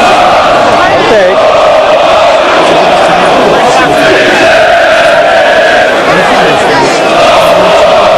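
A large crowd of football supporters chants in unison in an open stadium.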